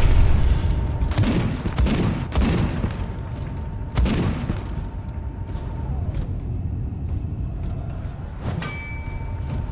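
Heavy guns fire in short bursts.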